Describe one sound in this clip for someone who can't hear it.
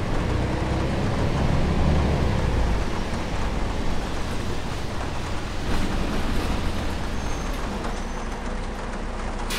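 Rain patters steadily on a bus windscreen.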